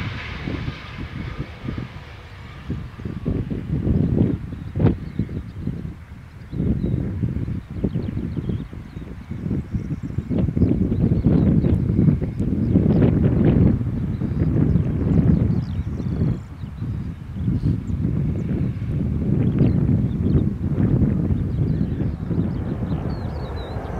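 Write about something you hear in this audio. A jet airliner's engines roar loudly as it lands and rolls down the runway, outdoors in gusty wind.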